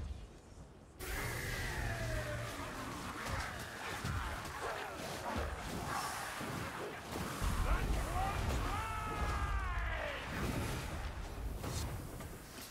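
Blades slash and strike in a loud fight.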